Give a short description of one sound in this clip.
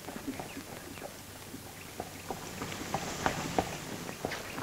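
Horse hooves clop on a dirt track.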